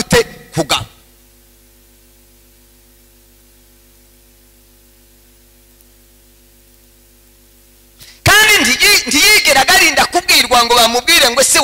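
A man preaches loudly and with animation through a microphone.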